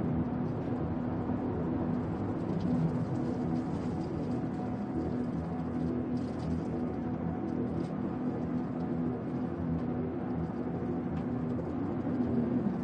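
A spacecraft engine hums steadily.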